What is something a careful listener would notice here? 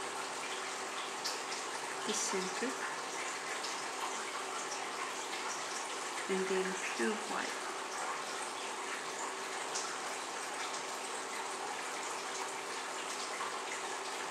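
A fine brush strokes softly across a nail.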